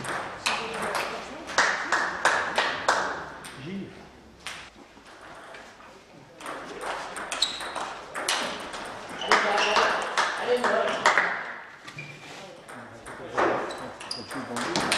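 A table tennis ball clicks quickly back and forth off paddles and a table, echoing in a large hall.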